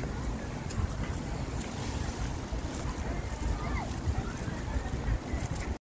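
A woman's footsteps tap on a paved path.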